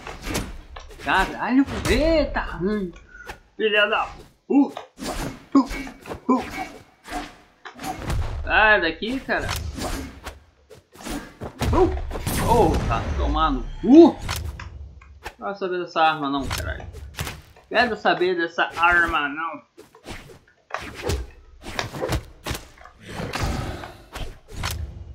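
Cartoon fighters trade quick blows with sharp thuds and whooshes.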